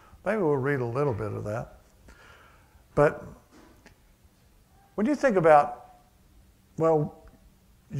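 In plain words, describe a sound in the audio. An elderly man speaks calmly in short phrases through a microphone.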